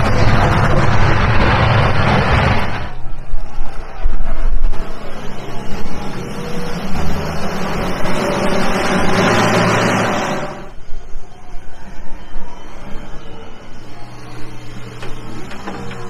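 A diesel wheel loader engine rumbles and revs as it drives.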